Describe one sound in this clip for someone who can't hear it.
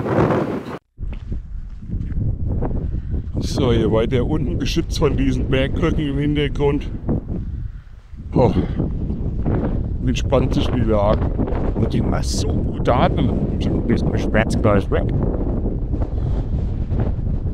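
A middle-aged man speaks close to a microphone, calmly, over the wind.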